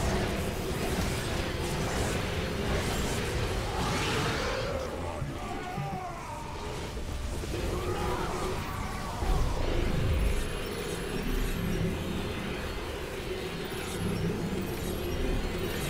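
Laser weapons fire and crackle in a busy battle.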